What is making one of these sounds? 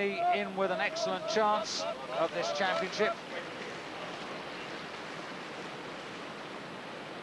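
A paddle splashes in rushing water.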